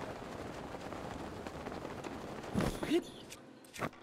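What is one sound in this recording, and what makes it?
Wind rushes steadily.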